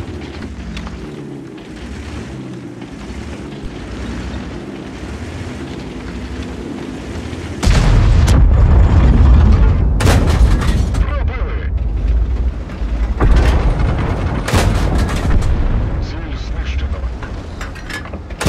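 A tank engine rumbles deeply.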